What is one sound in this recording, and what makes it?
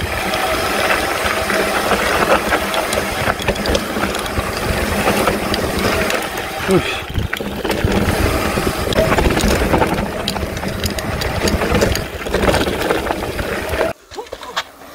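A mountain bike rattles and clatters down a rough dirt trail.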